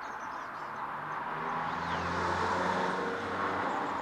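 A small truck engine rumbles as it drives past.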